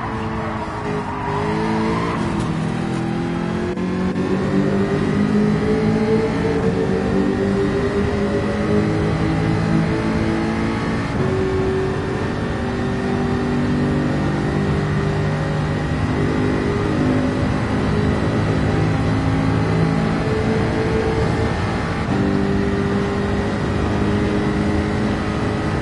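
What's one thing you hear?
A racing car engine roars at high revs, rising in pitch and dropping briefly with each gear change.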